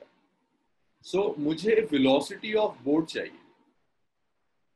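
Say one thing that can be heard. A young man speaks calmly through a microphone, as in an online call.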